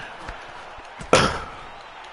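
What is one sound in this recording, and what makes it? A punch lands with a sharp thud.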